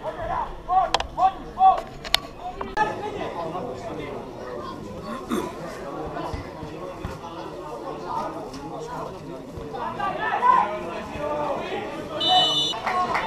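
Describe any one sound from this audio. A crowd of spectators murmurs and chatters in an open-air stand.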